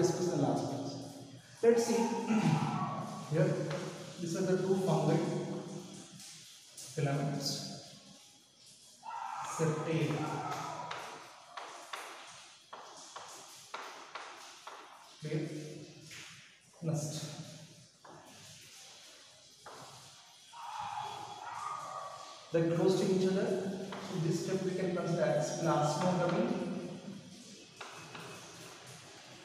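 A young man lectures calmly, close by.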